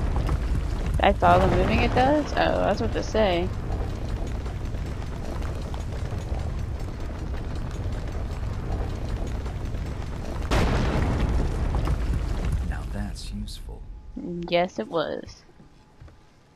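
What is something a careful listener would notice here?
A young woman speaks into a close microphone.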